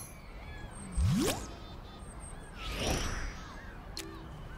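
A rising magical whoosh sweeps up as a game menu opens.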